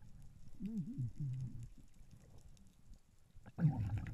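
Divers' exhaled bubbles burble faintly underwater.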